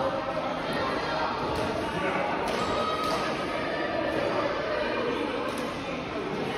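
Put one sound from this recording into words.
The sound echoes around a large hall.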